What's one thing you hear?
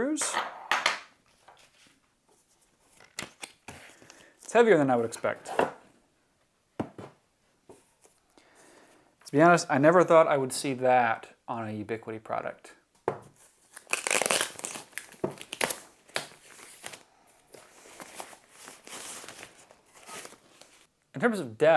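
Cardboard and plastic packaging rustle and crinkle.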